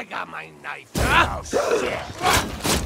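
Blades clash in a short fight.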